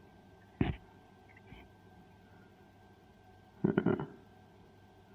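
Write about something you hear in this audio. A small circuit board knocks and scrapes softly as fingers handle it.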